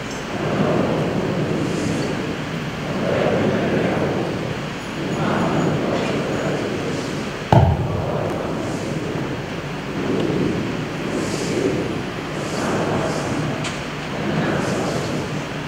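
A large crowd sings together in a big, echoing hall.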